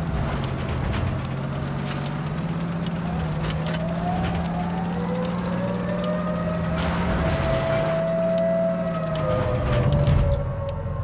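Tank tracks clatter over rough ground.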